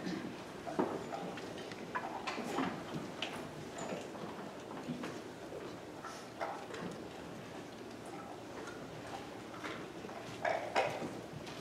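A young woman speaks calmly into a microphone over loudspeakers in an echoing room.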